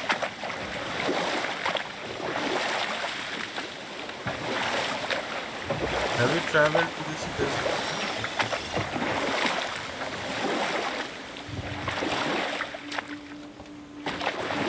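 Water laps and rushes against a rowing boat.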